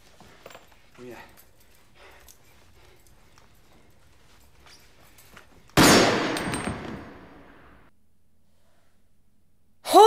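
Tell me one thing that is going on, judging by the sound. A young woman gasps nearby.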